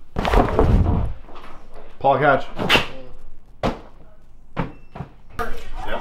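A soft cushion thuds as it lands.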